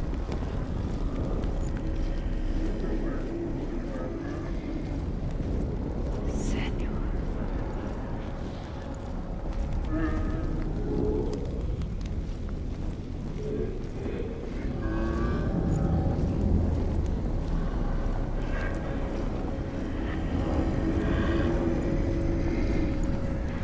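A torch flame crackles and flickers.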